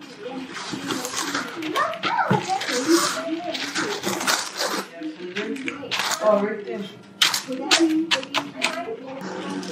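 Parchment paper rustles and crackles.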